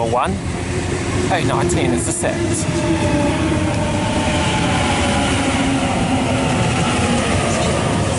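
An electric train rolls in, its motors whining as it slows.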